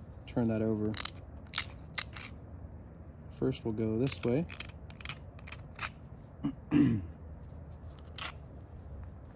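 Small stone flakes snap off with sharp clicks.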